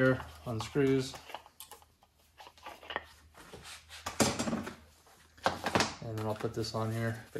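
Small parts clink and rattle on a workbench.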